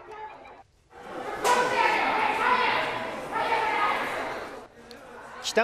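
A crowd of people murmurs and calls out.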